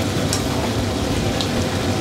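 A spoon stirs through a thick stew.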